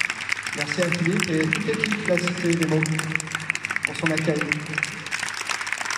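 A man speaks into a microphone.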